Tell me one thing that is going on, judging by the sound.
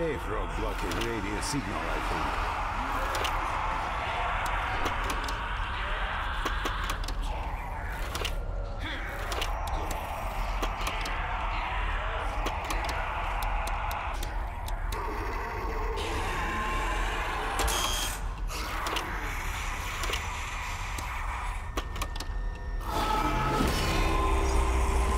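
Short electronic clicks tick as menu items are selected.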